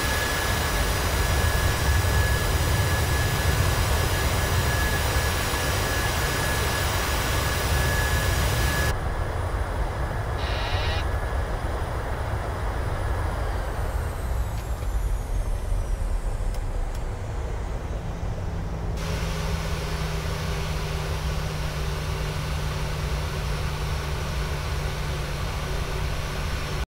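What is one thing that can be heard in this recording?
Jet engines roar steadily as an airliner rolls fast down a wet runway.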